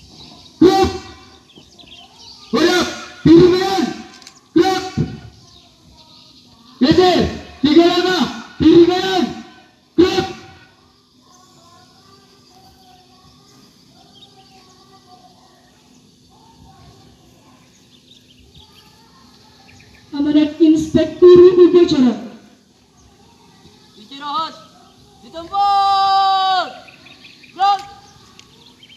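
A man shouts commands loudly outdoors.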